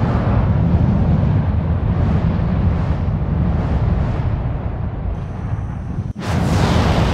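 A fireball roars and whooshes.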